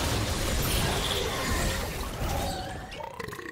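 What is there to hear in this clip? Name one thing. Magical blasts crackle and whoosh in a loud burst.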